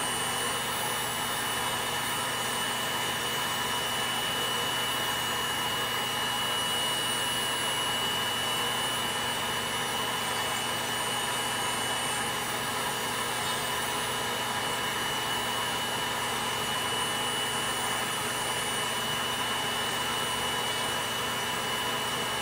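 A small electric nail drill whines steadily.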